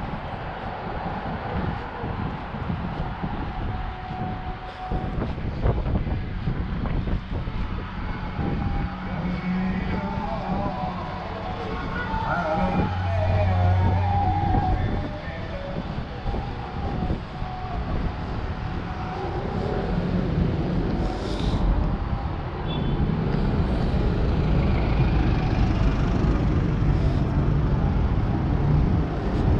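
Traffic hums steadily outdoors on a city street.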